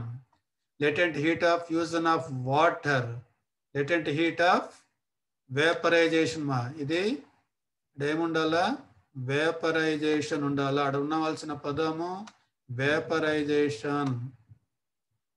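A man speaks calmly and steadily into a microphone, explaining.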